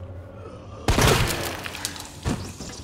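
A shotgun fires a loud blast that echoes.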